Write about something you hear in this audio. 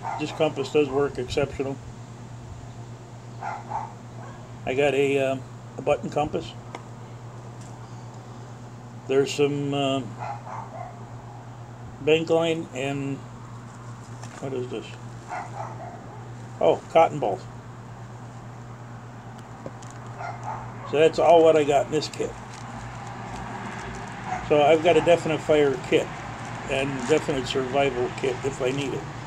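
An older man talks calmly close to the microphone.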